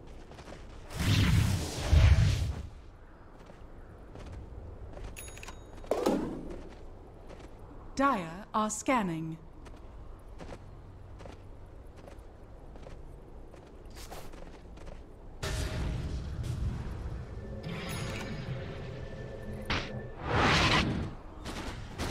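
Video game spell effects whoosh and crackle.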